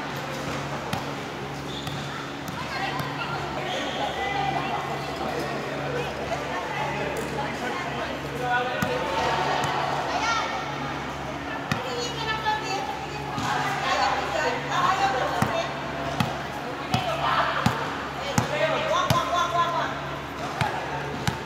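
A volleyball bounces with sharp thuds on a hard floor.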